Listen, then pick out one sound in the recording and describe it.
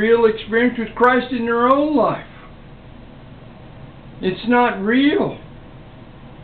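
An elderly man speaks calmly and close by, with pauses.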